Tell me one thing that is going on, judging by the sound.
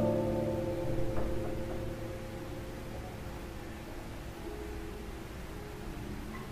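A classical guitar plays soft, ringing notes in an echoing hall.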